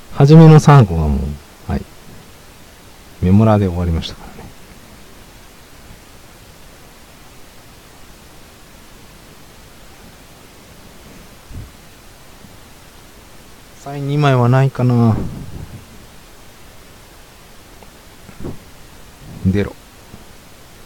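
A young man talks with animation into a close microphone, in short bursts.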